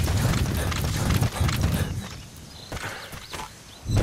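Footsteps run over dirt.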